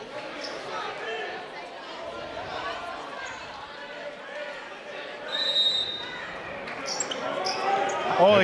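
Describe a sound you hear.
A crowd of spectators murmurs and chatters in an echoing gym.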